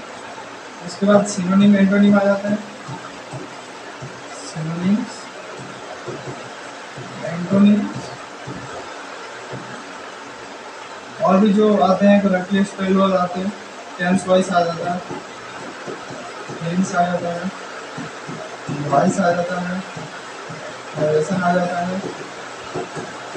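A young man speaks in short bursts, explaining calmly.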